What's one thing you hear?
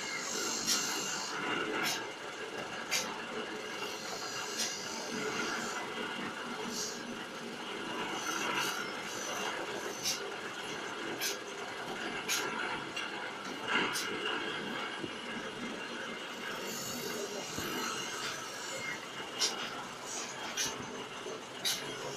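A filling machine hums and whirs steadily.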